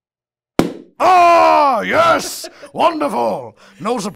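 A man shouts and exclaims in an excited, cartoonish voice close by.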